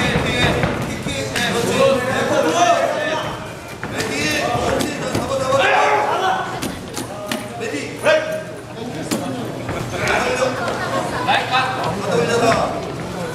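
A crowd of spectators shouts and cheers in an echoing indoor hall.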